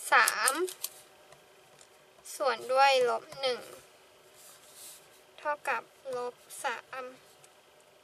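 A pen scratches softly on paper.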